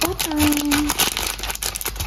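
Scissors snip through plastic.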